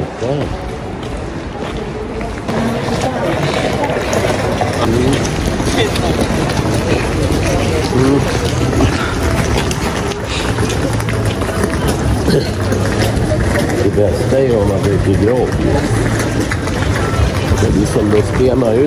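Footsteps tap on the paving stones.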